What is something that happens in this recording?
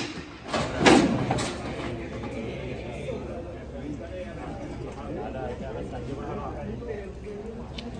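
Men talk and murmur nearby.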